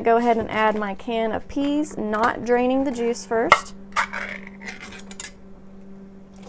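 Spice shakes out of a jar into a pot.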